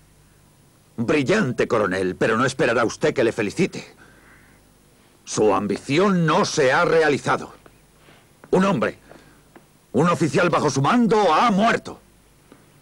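A middle-aged man speaks firmly and clearly nearby.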